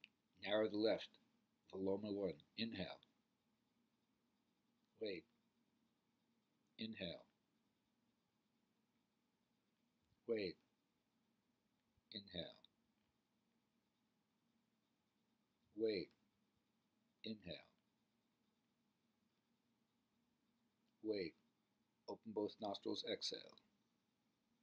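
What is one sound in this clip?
An elderly man speaks slowly and quietly in short bursts with long pauses, close to a microphone.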